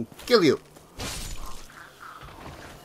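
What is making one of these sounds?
A sword swings and strikes a creature.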